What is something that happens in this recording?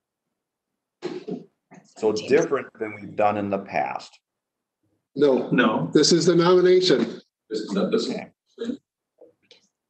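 A man speaks calmly into a microphone, heard over an online call.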